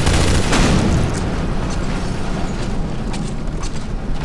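Many footsteps clatter quickly on a hard walkway.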